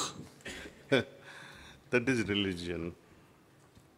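An elderly man laughs heartily close to a microphone.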